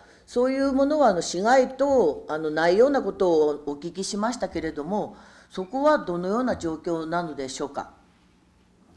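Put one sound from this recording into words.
An older woman speaks steadily into a microphone.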